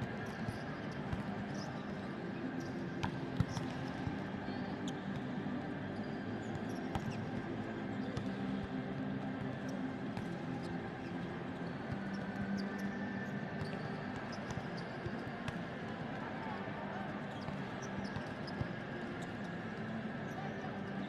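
Players' shoes squeak sharply on a court in a large echoing hall.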